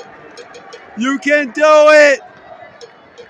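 A man in the crowd shouts out loudly, twice in a row.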